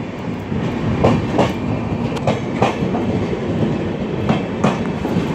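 Train wheels clack in pairs over rail joints.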